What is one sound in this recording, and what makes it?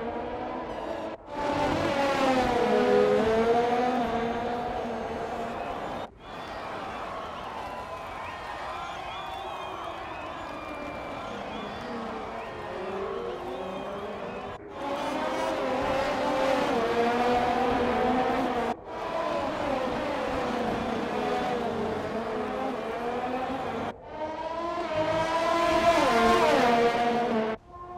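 Racing car engines whine at high revs, rising and falling in pitch as they shift gears.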